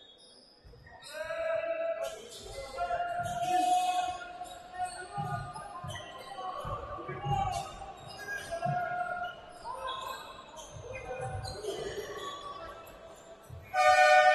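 A basketball bounces with dull thumps.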